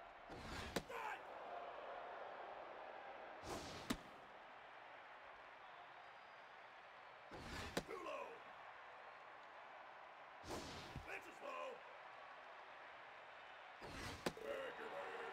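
A baseball smacks sharply into a catcher's mitt again and again.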